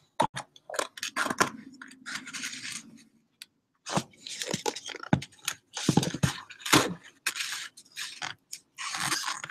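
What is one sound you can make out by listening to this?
A rag rubs and rustles against a glass jar.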